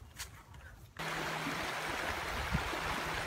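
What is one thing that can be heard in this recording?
A shallow river rushes over stones.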